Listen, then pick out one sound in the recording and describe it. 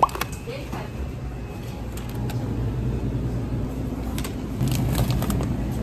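Plastic packaging crinkles and rustles in a hand.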